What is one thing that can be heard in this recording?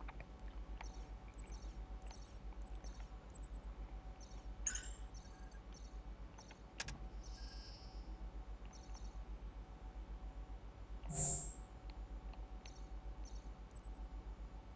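Short soft interface clicks tick as menu selections change.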